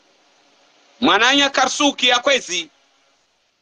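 A middle-aged man speaks loudly and with animation close to a phone microphone.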